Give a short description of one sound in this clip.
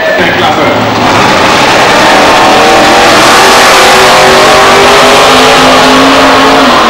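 Drag racing cars roar away from the start line at full throttle.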